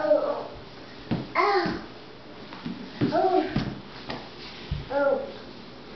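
A toddler's body thumps onto a wooden floor.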